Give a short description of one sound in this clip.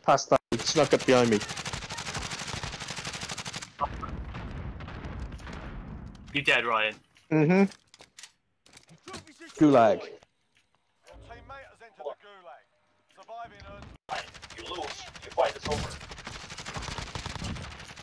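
A rifle fires single loud shots.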